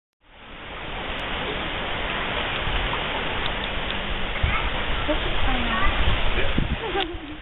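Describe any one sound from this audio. Otters splash as they swim through water.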